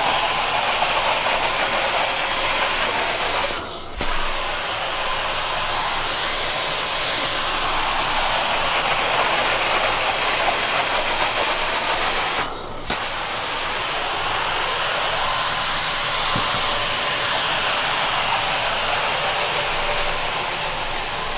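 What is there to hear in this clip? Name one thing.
A carpet cleaning wand hisses and sucks loudly as it slides over carpet, briefly cutting out twice.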